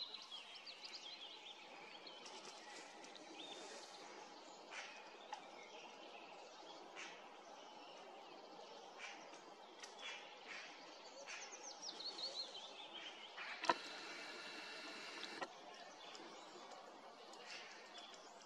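A bird chirps repeatedly.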